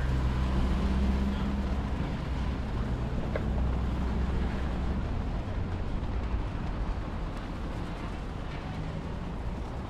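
Footsteps tap on paving stones nearby.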